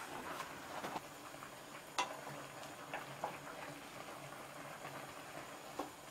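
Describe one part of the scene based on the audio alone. Wooden spatulas scrape and knock against a metal pot.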